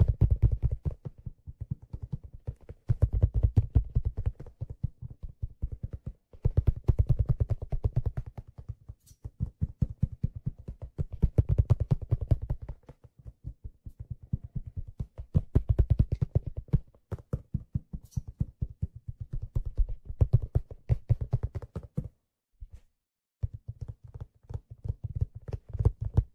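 A hat swishes and taps close to a microphone in quick, rustling bursts.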